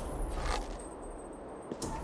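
A bowstring creaks as it is drawn tight.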